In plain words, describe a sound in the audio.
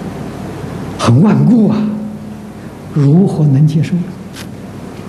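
An elderly man speaks calmly and warmly into a microphone.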